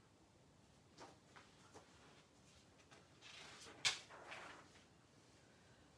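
Pages of a book rustle as they turn.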